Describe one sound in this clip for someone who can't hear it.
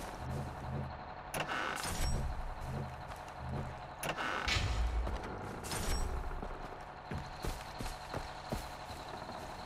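Footsteps tread steadily over grass and dirt.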